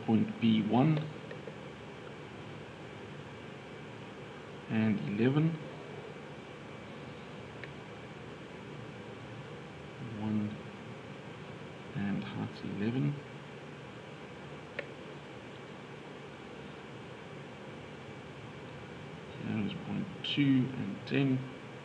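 A plastic set square slides across paper.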